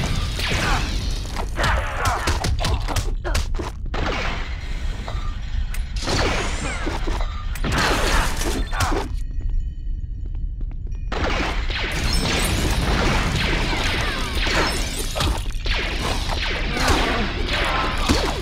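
Blaster shots fire rapidly.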